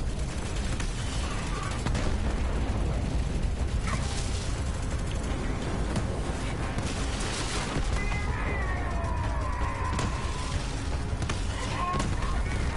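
Laser guns fire in rapid bursts.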